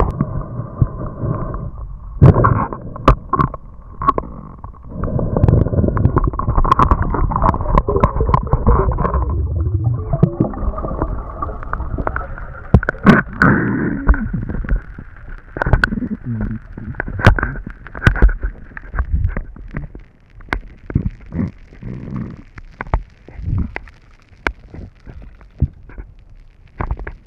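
Water churns and rumbles, heard muffled from underwater as a diver swims.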